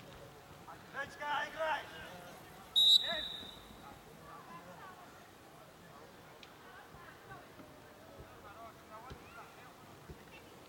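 Young men shout to each other in the distance outdoors.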